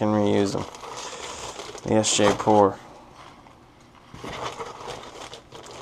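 A plastic mailer bag rustles as it is lifted from a cardboard box.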